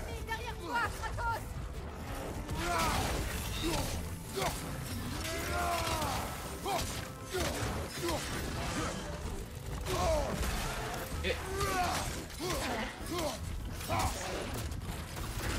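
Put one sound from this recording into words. A beast growls and roars.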